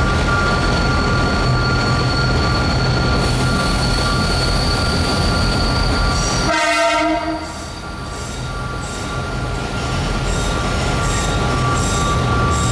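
A locomotive rumbles along on rails, heard from inside its cab.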